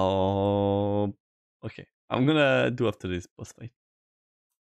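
A young man talks animatedly into a close microphone, drawing out some sounds.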